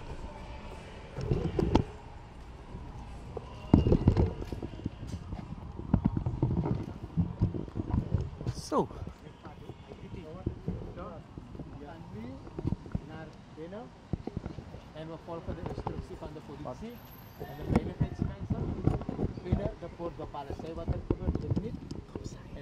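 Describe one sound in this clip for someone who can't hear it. A crowd of men talks and murmurs outdoors.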